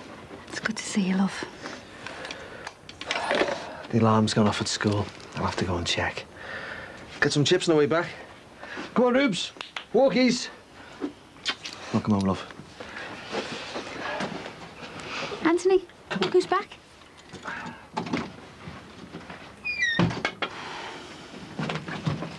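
A woman talks warmly nearby.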